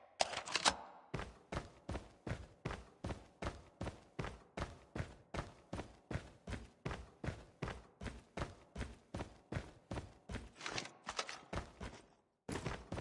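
Footsteps run at an even pace.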